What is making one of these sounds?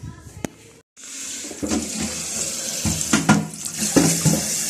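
Water runs from a tap and splashes into a jug.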